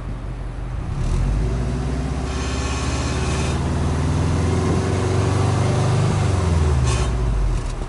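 A car engine revs up loudly several times, its pitch rising and falling.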